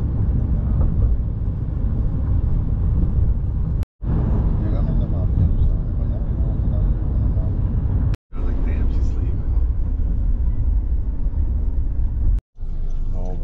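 A car's engine and tyres rumble low and steady from inside the car.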